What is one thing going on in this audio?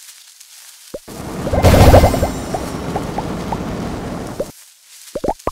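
A game explosion booms and rumbles, then fades.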